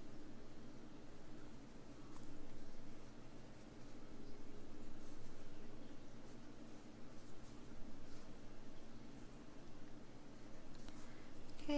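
A crochet hook softly clicks and rustles through yarn.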